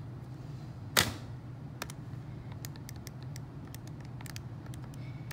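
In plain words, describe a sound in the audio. Calculator keys click as they are pressed.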